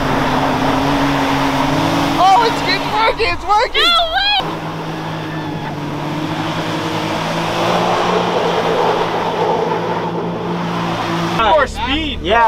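Off-road vehicle engines roar and rev.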